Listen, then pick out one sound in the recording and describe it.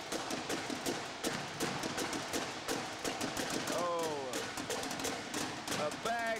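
Snare drums rattle out quick, sharp beats.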